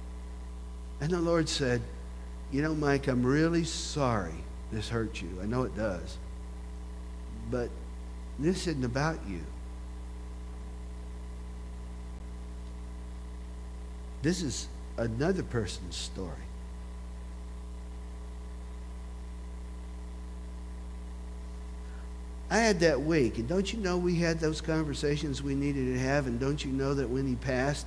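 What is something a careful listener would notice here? An older man speaks calmly and with pauses, heard through a microphone.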